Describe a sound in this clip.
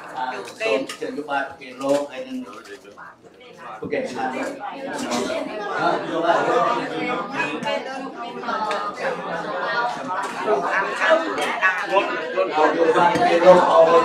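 A crowd of men and women talk at once nearby.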